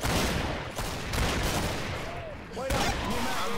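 Gunshots ring out loudly in quick succession.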